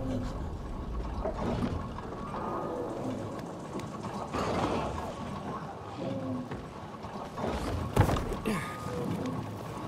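Footsteps knock on wooden ladder rungs during a climb.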